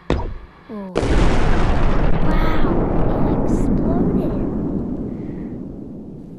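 A huge explosion booms and rumbles, slowly fading.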